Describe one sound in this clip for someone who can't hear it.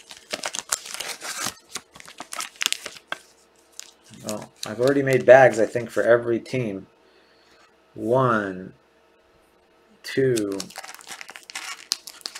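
Plastic card sleeves crinkle and click in hands.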